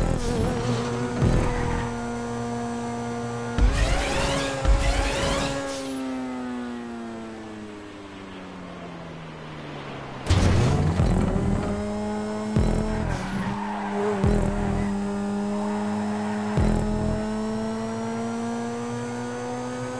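A racing car engine roars steadily, its pitch dropping and then climbing again as it speeds up.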